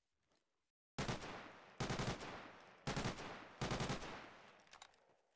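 A rifle fires short bursts of shots.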